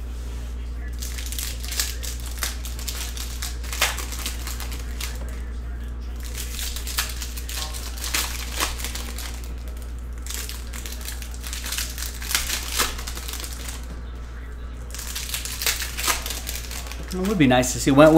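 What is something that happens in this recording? Foil card wrappers crinkle and tear in someone's hands.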